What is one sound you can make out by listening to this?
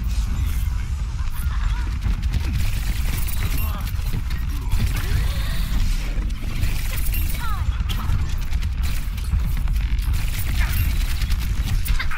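Rapid energy gunfire crackles and zaps.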